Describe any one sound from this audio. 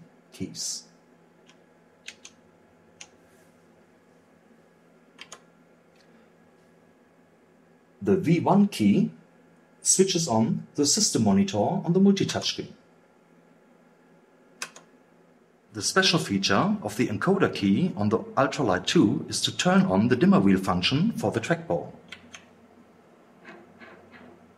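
Buttons click faintly as they are pressed.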